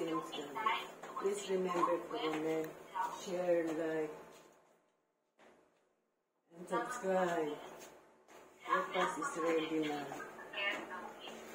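An elderly woman speaks close by.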